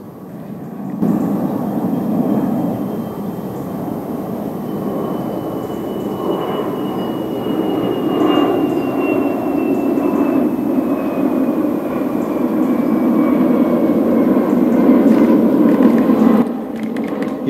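A jet airliner roars steadily overhead.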